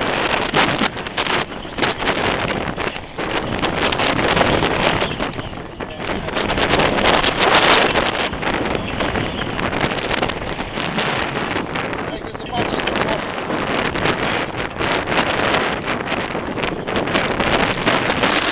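Choppy waves splash against a boat.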